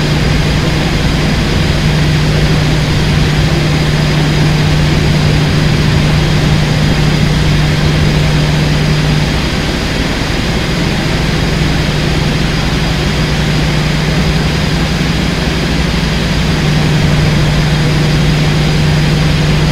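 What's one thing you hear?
A locomotive engine drones steadily with a low hum.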